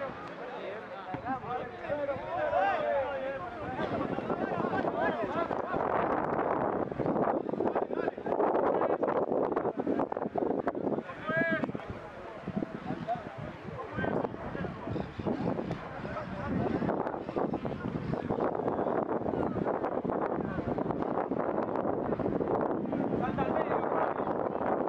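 A crowd of spectators talks and shouts close by, outdoors.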